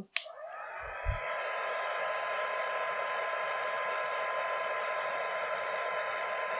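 A heat gun blows with a steady, high whirring hum.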